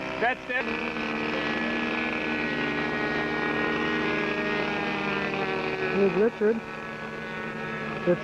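A small model airplane engine buzzes steadily at a high pitch.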